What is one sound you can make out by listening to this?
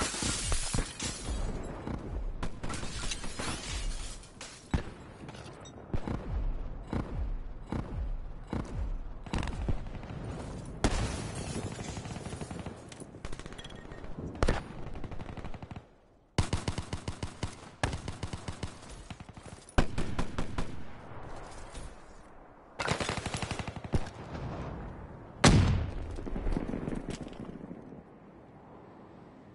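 Footsteps crunch quickly on snow and stone.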